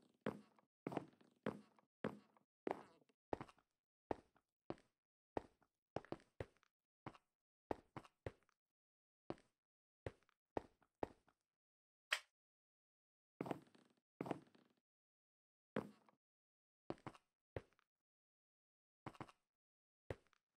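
Footsteps tap and thud on hard blocks at an uneven pace.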